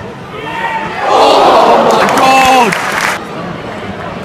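A crowd roars and cheers loudly.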